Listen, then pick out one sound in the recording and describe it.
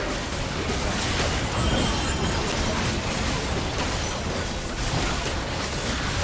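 Spells and attacks crackle and whoosh in a video game battle.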